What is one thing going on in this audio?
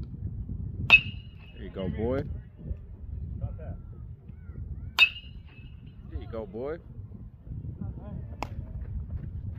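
A metal bat pings sharply as it hits a baseball, with a short ringing after each hit.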